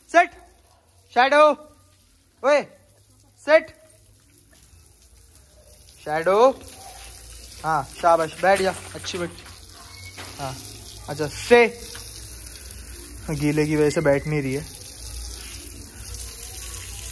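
Water sprays from a hose and splashes on the ground.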